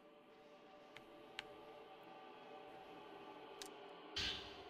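Footsteps tap softly on a wooden floor.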